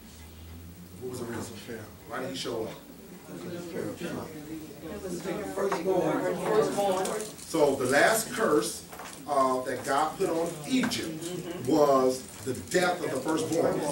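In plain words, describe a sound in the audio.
A man speaks with animation in a room with some echo.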